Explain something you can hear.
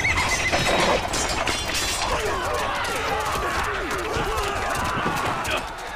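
Weapons clash and clang in a fight.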